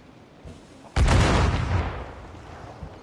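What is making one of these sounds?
A cannon fires with a loud, rumbling boom.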